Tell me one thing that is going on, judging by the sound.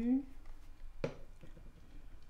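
A plastic bottle is set down on a table with a light knock.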